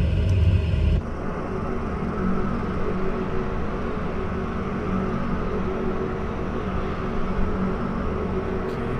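A propeller engine drones loudly from outside.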